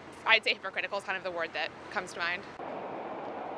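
A young woman speaks cheerfully close to a microphone.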